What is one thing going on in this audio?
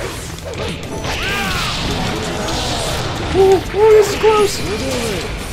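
Punches and blasts of a fighting game thud and crackle.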